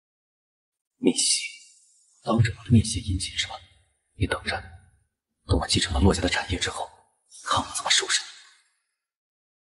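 A young man speaks tensely in a low voice, close by.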